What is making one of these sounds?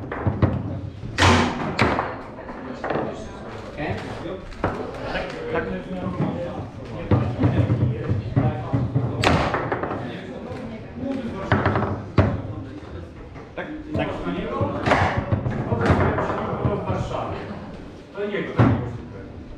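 A ball cracks sharply against the table walls.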